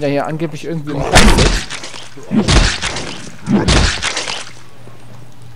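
Heavy wet blows thud and splatter during a brawl.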